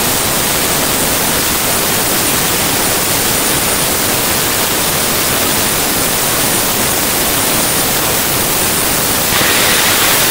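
A jet dragster engine roars loudly and steadily.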